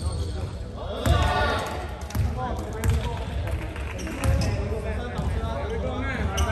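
Several young men call out to each other in a large echoing hall.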